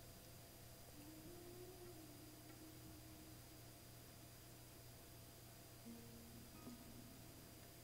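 A man murmurs quietly close to a microphone.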